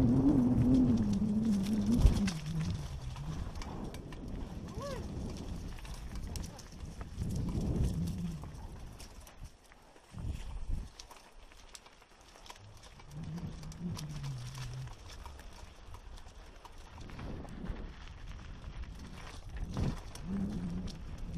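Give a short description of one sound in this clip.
A dirt bike engine revs up and down on a trail.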